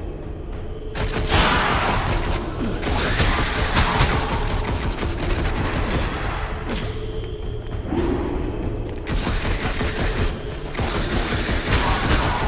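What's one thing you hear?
Magic blasts crackle and burst in quick bursts.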